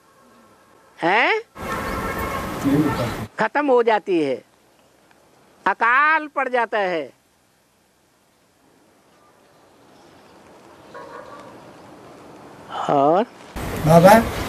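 An elderly man speaks calmly and closely, with long pauses.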